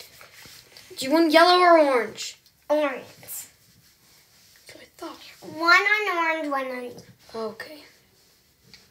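A young girl sings loudly and playfully nearby.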